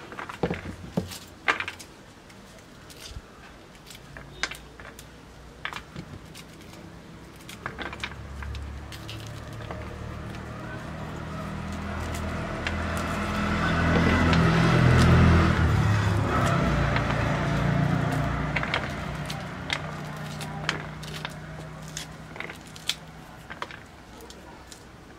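Hands tear and rustle dry corn husks close by.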